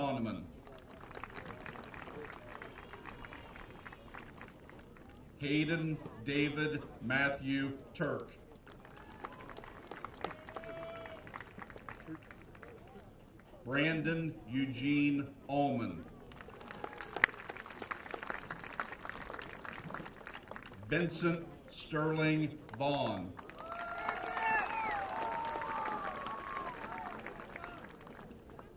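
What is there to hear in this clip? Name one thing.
A crowd claps and cheers in the distance.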